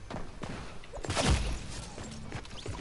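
A sudden whooshing burst rings out.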